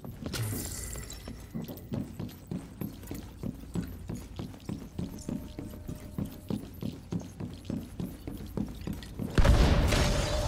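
Heavy footsteps thud at a steady pace.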